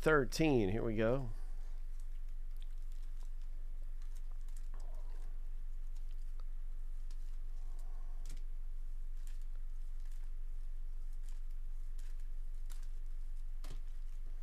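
Foil card packs crinkle and rustle as they are shuffled in gloved hands.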